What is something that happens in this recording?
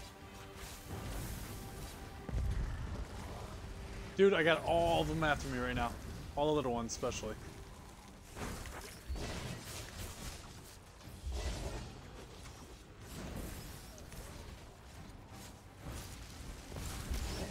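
Magic spells burst and boom in a fight.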